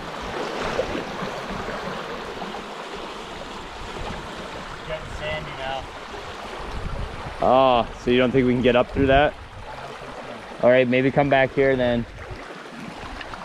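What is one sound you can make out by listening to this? A shallow river current rushes and splashes around a man's legs as he wades.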